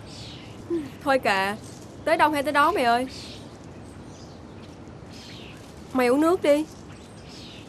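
Two young women talk calmly nearby.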